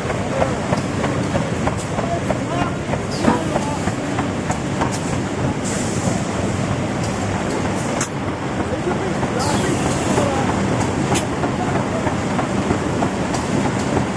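Cardboard sheets clatter and slap as a machine feeds them through.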